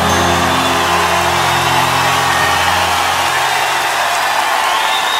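An acoustic guitar rings out with a sustained chord.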